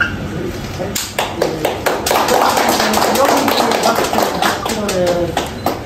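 A small group of people applaud indoors.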